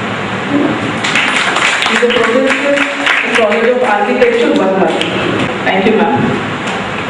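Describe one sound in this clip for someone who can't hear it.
A small group of people claps their hands.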